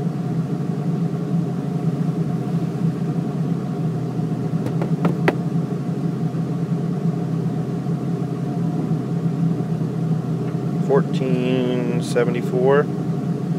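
A car engine idles with a steady low hum, heard from inside the car.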